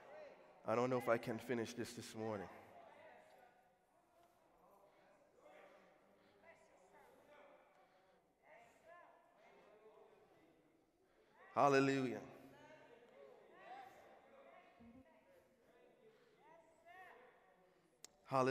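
A man preaches with passion into a microphone over loudspeakers in a large echoing hall.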